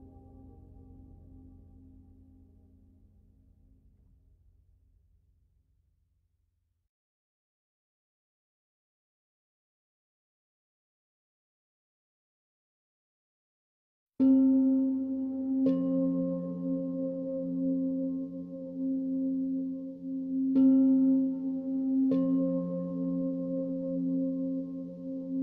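Gentle piano music plays softly, fades away, then starts again with clear chiming notes.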